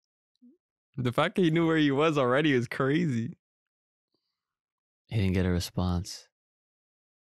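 A young man talks calmly into a close microphone.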